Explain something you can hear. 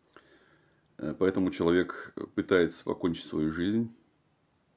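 A man speaks calmly and close up.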